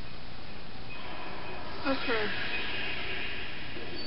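A bright magical whoosh swells up from a television speaker.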